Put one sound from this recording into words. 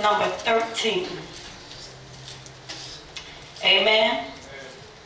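A woman speaks with fervour into a microphone through loudspeakers in an echoing room.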